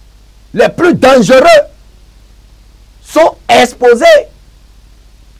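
A man speaks loudly and forcefully into a microphone, in short emphatic bursts.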